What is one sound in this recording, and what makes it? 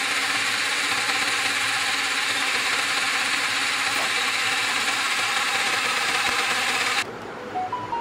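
A small blender motor whirs steadily, then stops.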